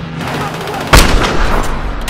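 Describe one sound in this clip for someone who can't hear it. A sniper rifle fires a single loud shot.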